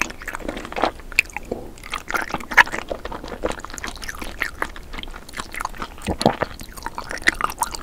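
A woman chews crunchy jelly candy with wet, squishy mouth sounds close to a microphone.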